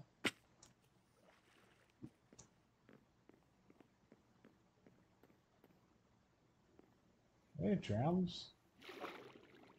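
Water splashes as something swims.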